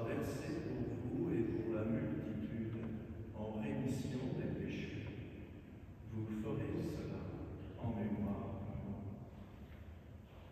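An elderly man speaks slowly and solemnly in a large echoing hall.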